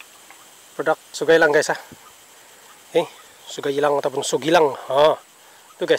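A fishing reel clicks as it is wound.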